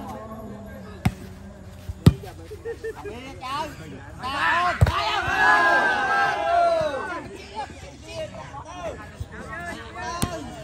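A ball thumps sharply off a player's foot.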